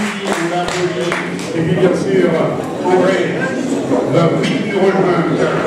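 A woman speaks calmly through a microphone and loudspeakers in a large echoing hall.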